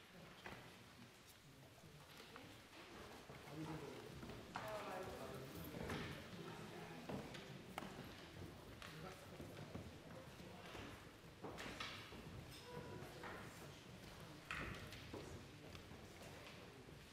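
Several adults murmur and chat at a distance in a large echoing hall.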